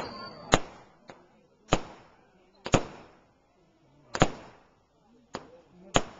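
Fireworks burst with loud, echoing bangs, again and again.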